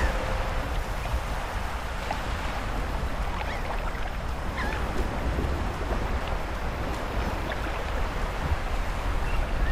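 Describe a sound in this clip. Footsteps run quickly over sand and grass.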